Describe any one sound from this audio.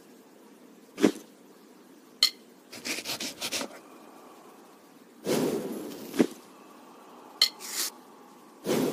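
Short sharp clicks sound now and then.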